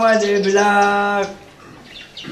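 An elderly man sings out in a loud, drawn-out voice close by.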